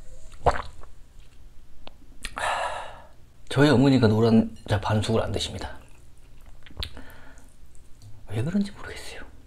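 A man slurps and chews food noisily close to a microphone.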